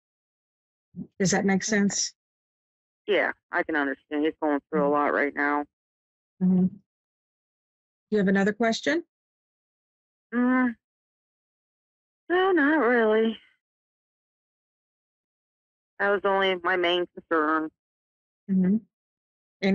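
A middle-aged woman talks calmly into a microphone, with pauses.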